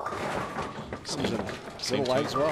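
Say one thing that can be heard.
Bowling pins clatter as they fall.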